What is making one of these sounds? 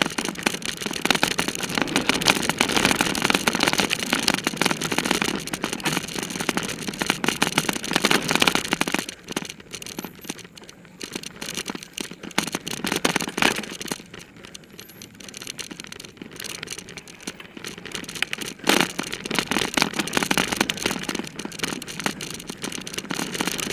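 A bicycle rattles and clatters over a bumpy dirt trail.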